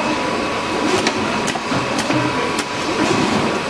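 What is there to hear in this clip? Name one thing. A machine clicks sharply now and then.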